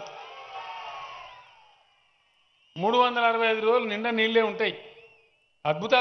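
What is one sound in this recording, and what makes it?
An elderly man speaks loudly into a microphone over loudspeakers.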